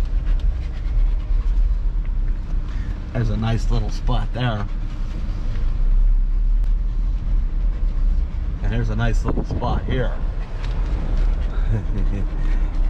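A car engine rumbles low and steady while the car rolls slowly.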